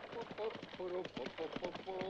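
A horse's hooves clop on a dirt track.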